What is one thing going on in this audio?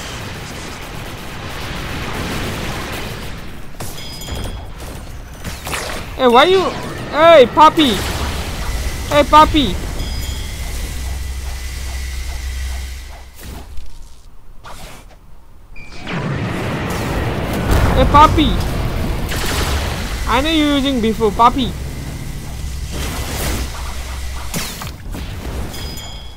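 Energy blasts whoosh and boom in quick bursts.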